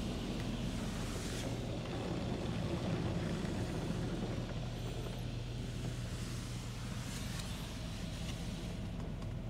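Brushes scrub and slap against a car's glass.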